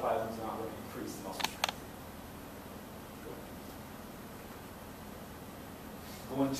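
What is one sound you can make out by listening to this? A man lectures calmly in an echoing room.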